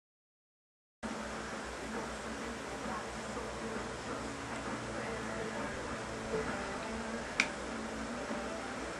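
Video game menu music plays through a television speaker.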